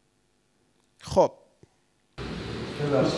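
A man speaks with feeling into a microphone, close by.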